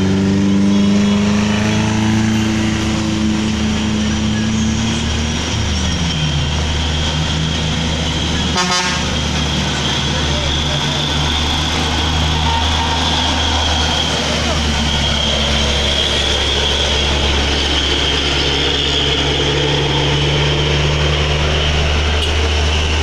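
A heavy bus engine rumbles nearby as the bus climbs slowly.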